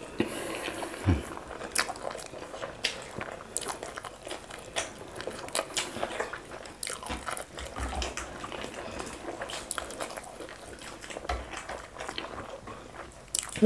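Wet food squelches as fingers dig into it.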